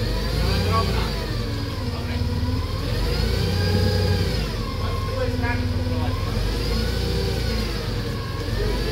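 A forklift's hydraulics whine, rising and falling in pitch.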